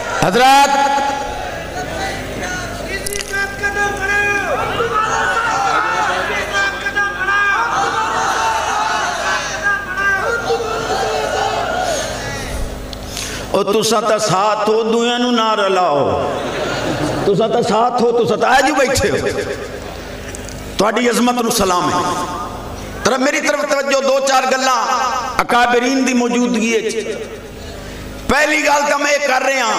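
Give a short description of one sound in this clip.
A man speaks with animation into a microphone, heard through loudspeakers.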